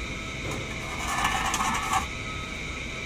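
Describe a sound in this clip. A plastic cover rustles and scrapes.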